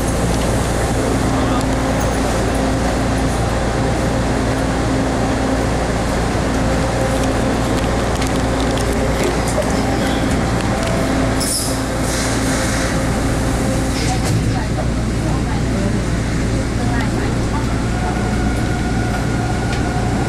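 Train motors whine with a steady hum that shifts in pitch.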